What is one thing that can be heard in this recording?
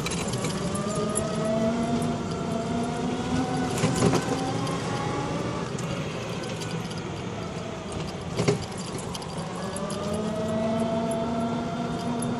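A scooter engine hums steadily, rising and falling in pitch as it speeds up and slows down.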